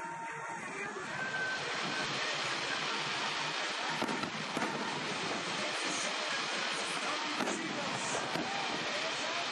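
Fireworks burst and crackle overhead.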